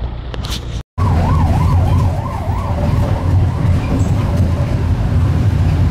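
An ambulance siren wails up and down nearby.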